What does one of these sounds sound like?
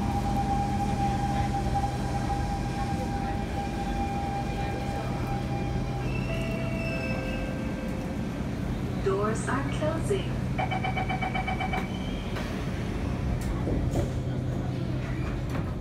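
An electric metro train hums while standing at a platform.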